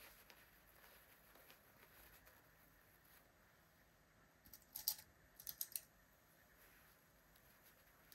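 Fabric rustles and swishes as hands handle it.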